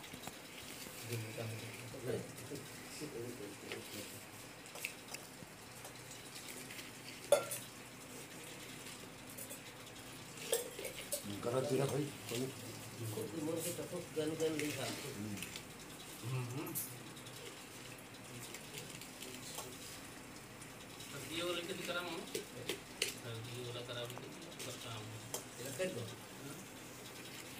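Men talk nearby in calm, low voices.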